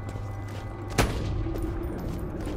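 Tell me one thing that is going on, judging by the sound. A rifle fires a single loud shot that echoes briefly.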